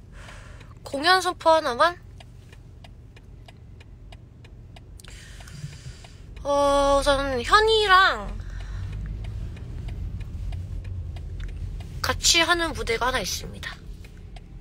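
A young woman sings in short bursts close to a phone microphone.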